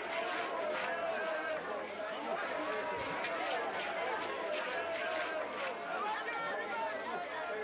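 A crowd of men and women shouts and jeers loudly all around.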